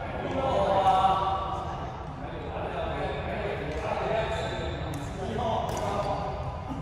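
A man talks loudly nearby in an echoing hall.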